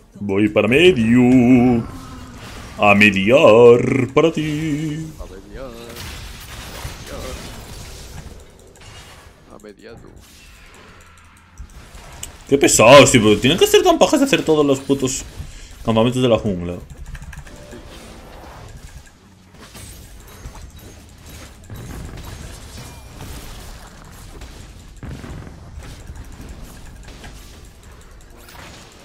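Game effects clash and zap during a fight.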